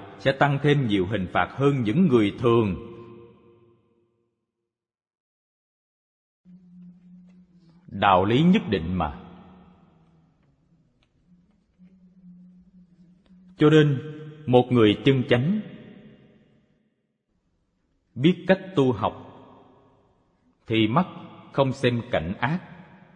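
An elderly man speaks calmly and expressively in bursts, close to a microphone, with pauses between phrases.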